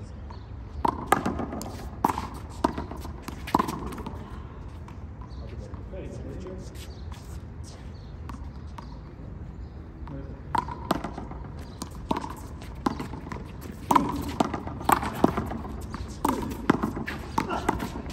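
A ball smacks sharply against a wall and the ground, over and over.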